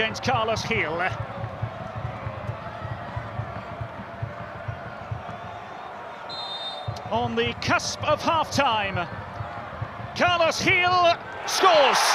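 A large crowd murmurs and drums in a big open stadium.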